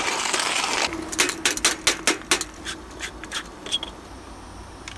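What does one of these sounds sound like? Small metal objects clink and tap on a counter.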